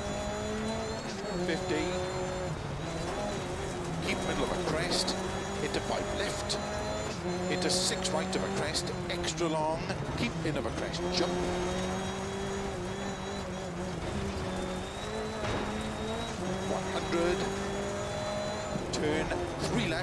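Tyres crunch and skid over loose gravel.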